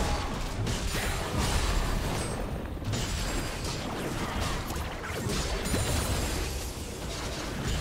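Spells and weapon strikes crackle and whoosh in a fast video game fight.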